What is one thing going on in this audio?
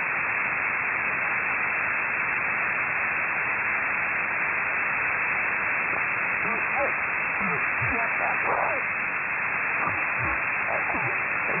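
Shortwave radio static hisses steadily through a receiver.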